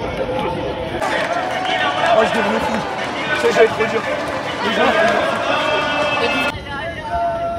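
A young man shouts with animation close by.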